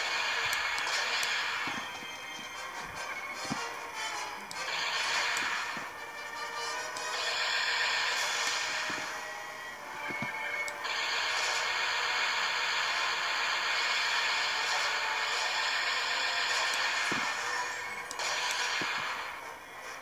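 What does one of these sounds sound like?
Explosions burst with a rushing roar through small laptop speakers.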